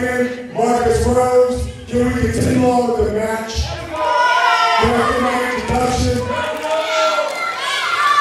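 A man speaks loudly into a microphone, heard over loudspeakers in an echoing hall.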